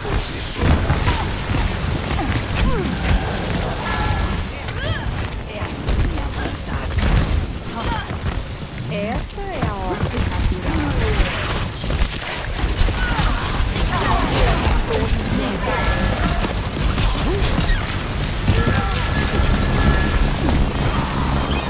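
A sci-fi energy beam weapon buzzes and crackles as it fires.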